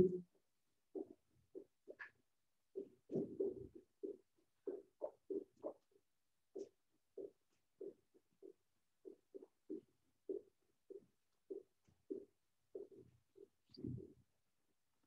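Feet tap lightly and quickly on a hard floor.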